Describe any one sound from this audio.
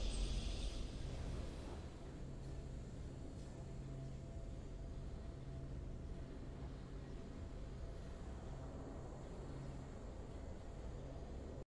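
A game's victory music plays softly with a low, steady drone.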